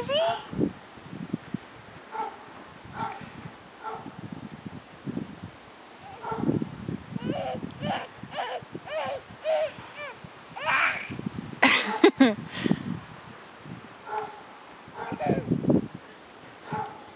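Toddlers babble and squeal close by.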